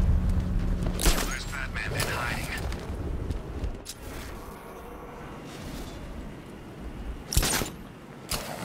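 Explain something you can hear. A grapple launcher fires with a sharp whoosh.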